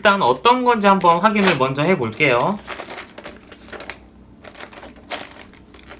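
A paper booklet rustles as it is unwrapped and opened.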